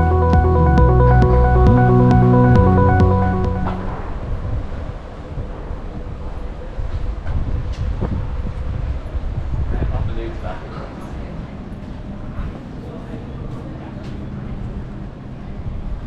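Traffic rumbles along a nearby street.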